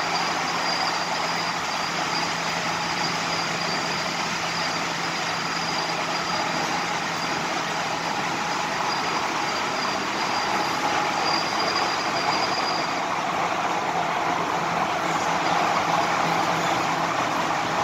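A train rumbles and roars steadily along the tracks.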